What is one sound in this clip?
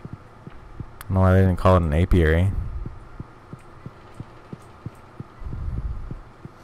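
Footsteps tap lightly and evenly on a wooden floor.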